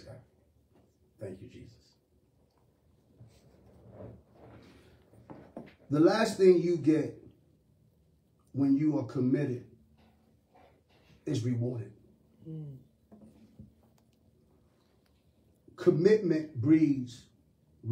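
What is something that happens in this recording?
A middle-aged man speaks calmly and earnestly close to a microphone, with pauses.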